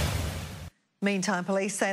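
A woman reads out calmly into a microphone.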